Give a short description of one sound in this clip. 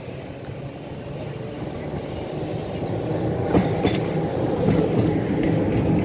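Another tram rolls past close by, rumbling loudly.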